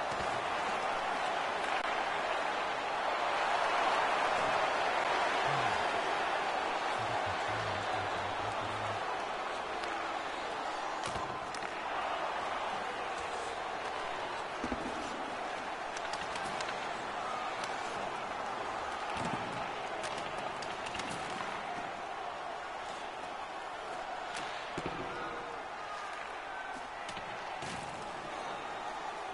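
An arena crowd roars and murmurs.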